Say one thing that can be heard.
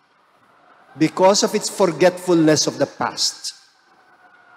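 A middle-aged man speaks firmly into a microphone.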